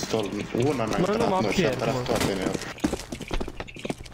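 Footsteps run across stone pavement.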